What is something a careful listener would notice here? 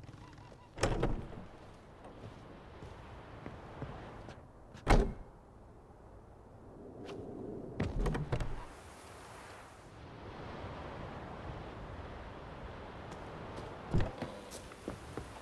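Footsteps thud on wooden floorboards.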